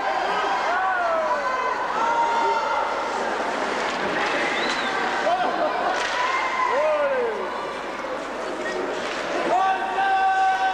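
Ice skates scrape across the ice.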